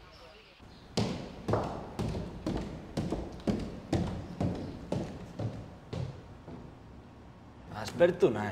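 Footsteps tap down wooden stairs.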